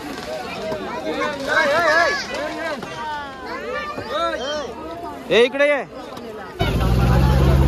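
Children shout and call out excitedly nearby.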